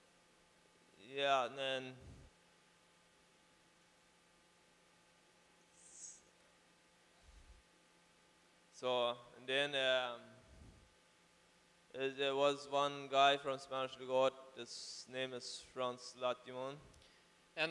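A man speaks calmly into a microphone in short bursts with pauses.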